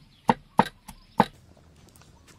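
A knife chops on a board with sharp knocks.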